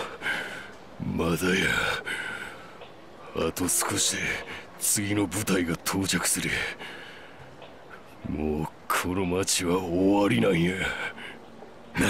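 A man speaks in a rough, gruff voice.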